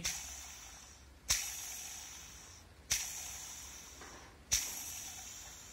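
A pulley bearing whirs as a hand spins it, each spin fading out slowly.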